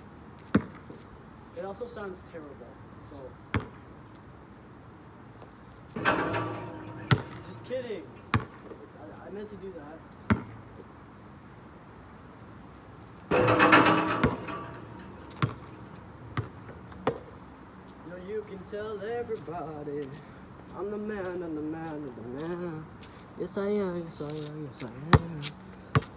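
A basketball bounces on hard pavement outdoors.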